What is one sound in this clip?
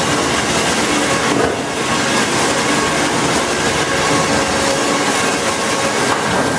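A large saw cuts through a log with a harsh grinding roar.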